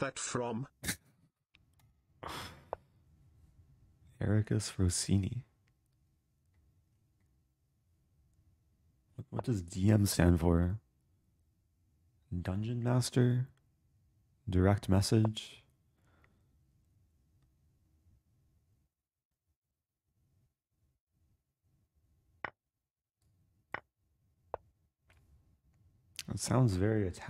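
A young man talks calmly and casually, close to a microphone, in bursts with pauses.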